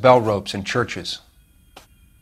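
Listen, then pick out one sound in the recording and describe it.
A man speaks calmly in a low voice.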